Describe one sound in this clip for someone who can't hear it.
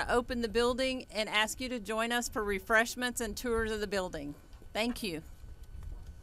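A woman speaks calmly through a microphone outdoors.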